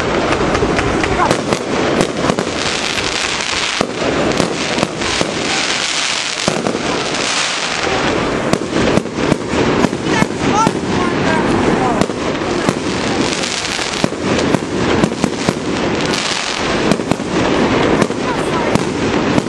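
Fireworks burst with rapid loud bangs overhead.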